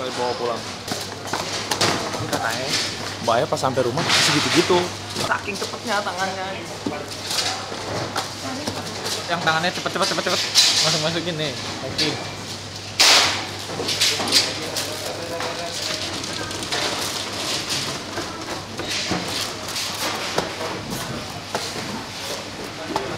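Cardboard boxes tap and rustle as they are handled.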